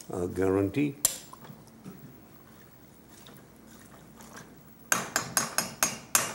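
A metal spoon clinks and scrapes against a pot.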